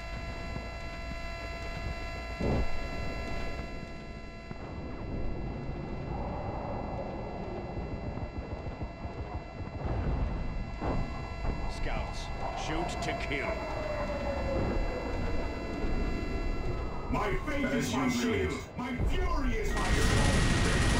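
Gunfire and explosions crackle and boom in a battle.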